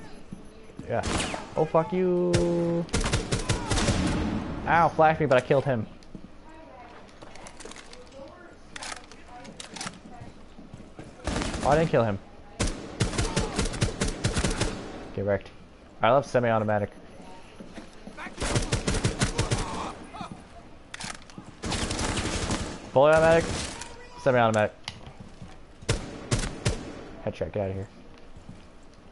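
A rifle fires in rapid bursts of shots.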